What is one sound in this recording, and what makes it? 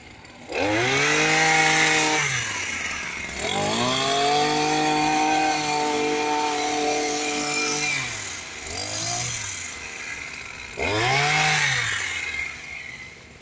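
A petrol hedge trimmer engine revs up and down in loud bursts.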